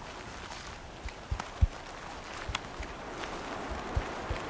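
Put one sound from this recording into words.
Footsteps tread on rocky ground.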